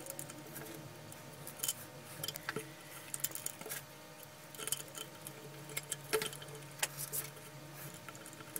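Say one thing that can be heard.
Gloved hands handle a plastic box with small clicks and rattles.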